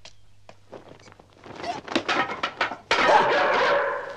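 A man crashes to the floor with a thud.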